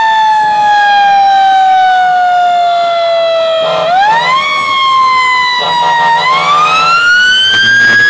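A siren wails loudly close by, slowly falling and rising in pitch.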